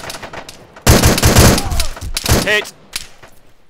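A gun fires a loud, rapid burst.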